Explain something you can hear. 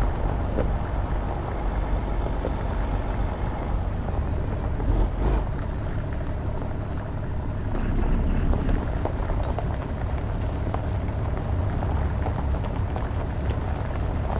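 Tyres crunch on a gravel road.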